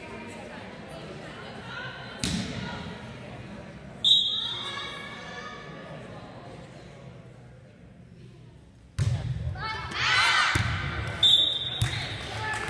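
Young girls call out and shout to each other.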